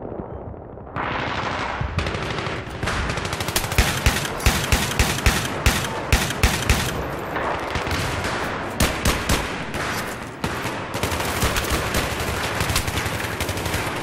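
Rapid gunfire cracks loudly in quick bursts.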